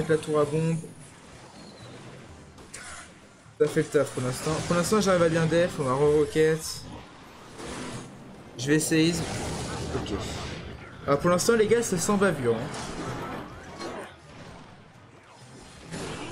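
Clashing and bursting battle effects sound in a game.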